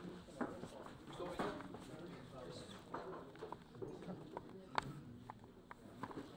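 A man speaks calmly into microphones.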